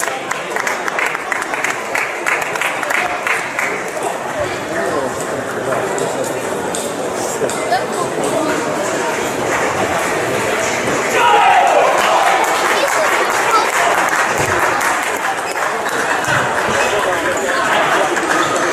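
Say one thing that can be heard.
Table tennis balls click rapidly against paddles and tables in a large echoing hall.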